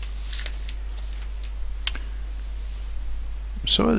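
A sheet of paper rustles as it is turned over.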